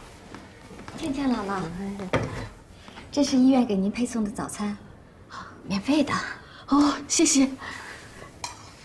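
A young woman speaks kindly and calmly, close by.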